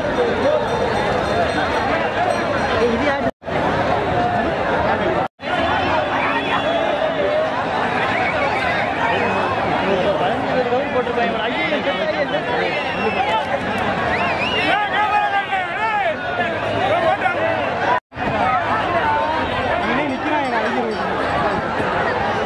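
A large outdoor crowd of men shouts and cheers excitedly.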